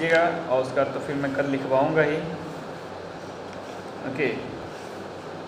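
A young man speaks calmly, close to the microphone.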